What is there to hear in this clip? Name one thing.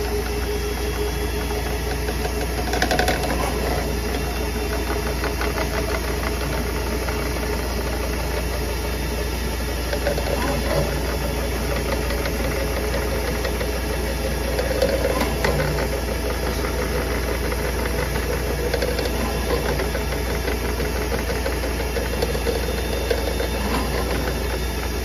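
Water sloshes and gurgles in a drain basin.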